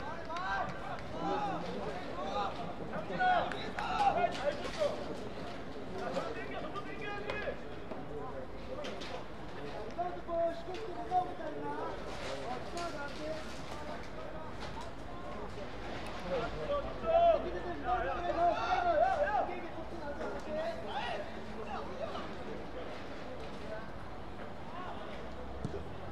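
Young players shout and call to each other across an open outdoor pitch.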